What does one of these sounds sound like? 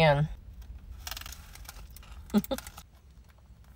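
A woman crunches food while chewing.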